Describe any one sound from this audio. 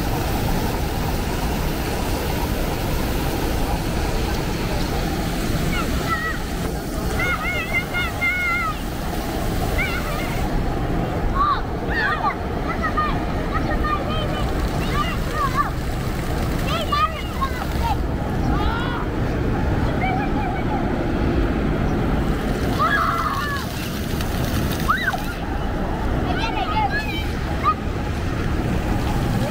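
Fountain jets splash and spatter onto wet pavement.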